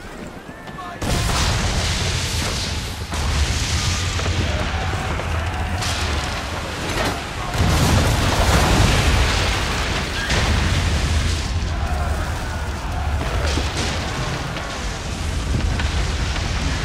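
Cannons boom and crash heavily, one after another.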